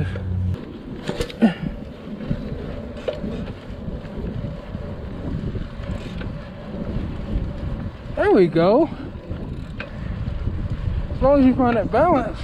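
Bicycle tyres roll and hum on pavement.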